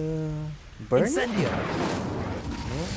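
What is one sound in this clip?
Flames burst and roar.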